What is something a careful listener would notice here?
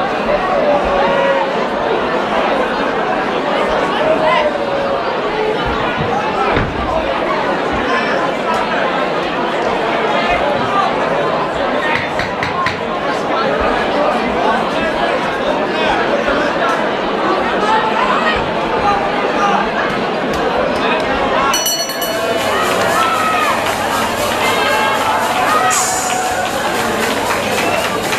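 A crowd shouts and cheers loudly in an echoing hall.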